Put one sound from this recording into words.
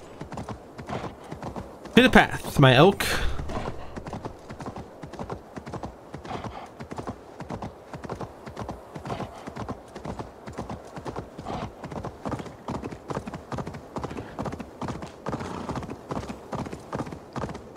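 A young man talks calmly into a microphone.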